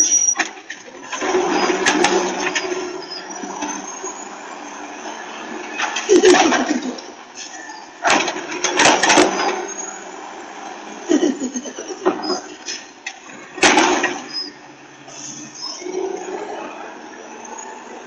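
A garbage truck engine rumbles and whines nearby.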